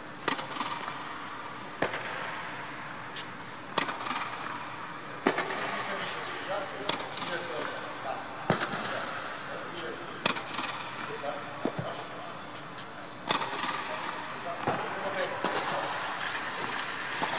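A tennis racket strikes a ball with sharp pops, echoing in a large hall.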